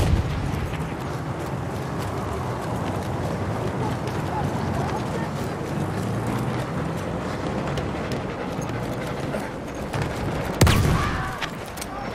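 Footsteps crunch over dirt and gravel.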